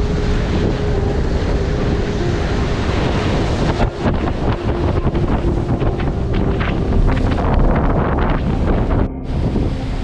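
Rough surf crashes and churns loudly close by.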